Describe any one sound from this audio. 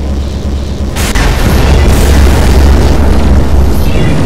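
Laser weapons zap and buzz.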